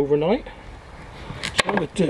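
A knife cuts into a firm vegetable.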